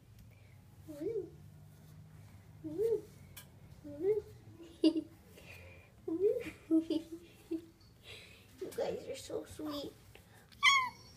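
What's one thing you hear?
A cat meows close by.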